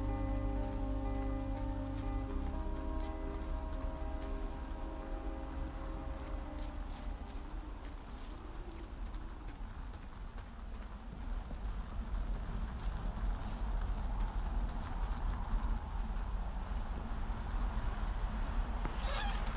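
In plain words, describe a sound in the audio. Footsteps crunch on gravel and then thud on wooden stairs.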